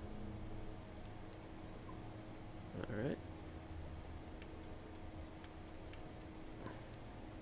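Switches click sharply now and then.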